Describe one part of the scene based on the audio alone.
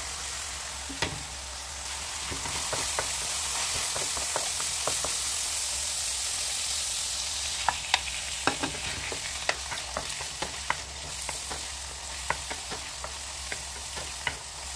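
A wooden spatula scrapes and clacks against a metal pan.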